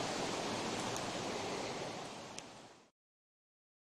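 A campfire crackles and hisses.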